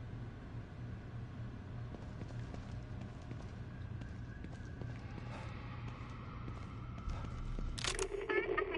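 Footsteps shuffle on a hard floor.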